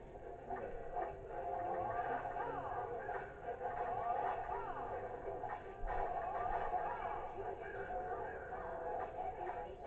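Video game music and combat sound effects play through a television speaker, heard from across a room.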